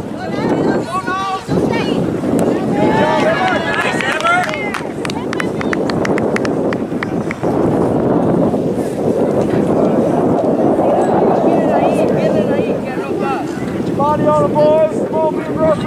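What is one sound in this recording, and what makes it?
Spectators near the microphone shout and cheer outdoors.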